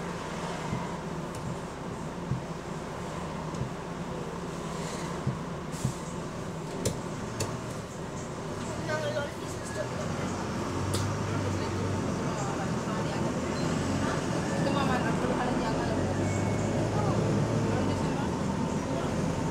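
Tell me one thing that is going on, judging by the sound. A bus engine hums steadily inside the cabin.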